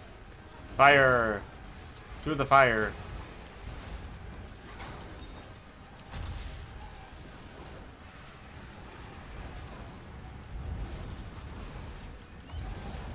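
Video game spells whoosh and thud during a battle.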